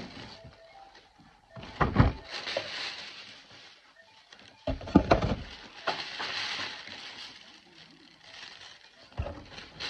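Plastic packaging crackles as it is handled.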